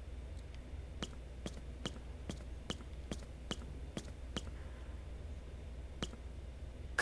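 Footsteps thud steadily on a wooden floor.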